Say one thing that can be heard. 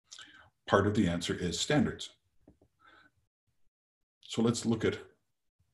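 A middle-aged man speaks calmly into a microphone, heard as if over an online call.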